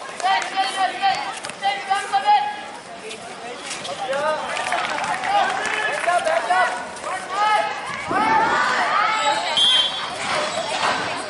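Young men shout and call to each other close by.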